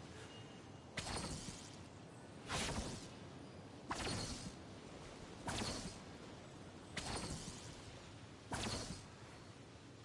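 Magic attacks burst with loud whooshing blasts, over and over.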